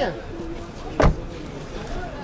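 A car door shuts with a thud.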